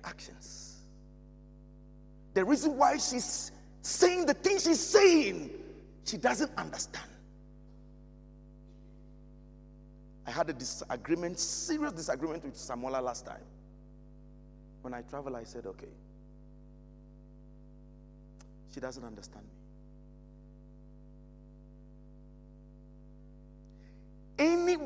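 A man speaks with animation into a microphone, with long pauses.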